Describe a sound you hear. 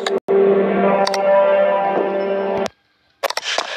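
Upbeat electronic music plays briefly, then cuts off.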